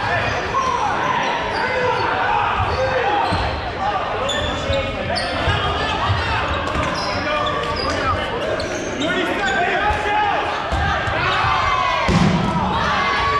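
Many players shout and call out to each other in a large echoing gym.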